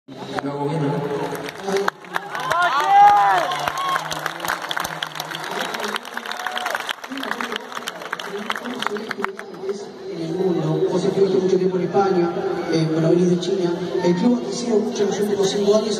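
A large crowd sings and chants in the distant stands.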